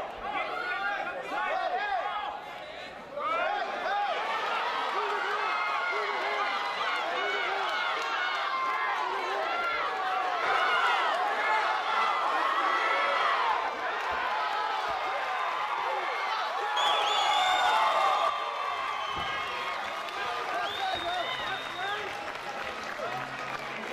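A large crowd cheers and shouts loudly in an echoing arena.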